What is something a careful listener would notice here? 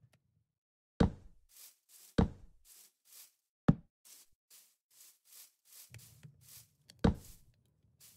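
Blocks are placed with sharp thuds.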